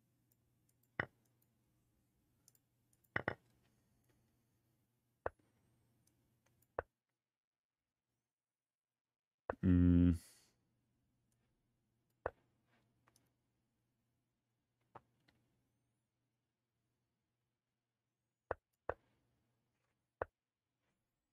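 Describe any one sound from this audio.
Soft digital clicks sound as game pieces move.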